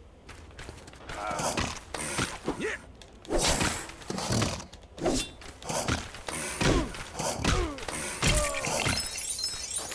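Game figures clatter and thud as they fight.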